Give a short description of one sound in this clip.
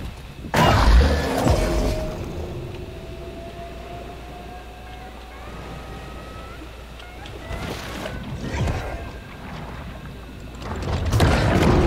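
Water swirls and churns around a swimming creature.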